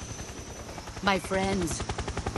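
A woman speaks calmly and quietly.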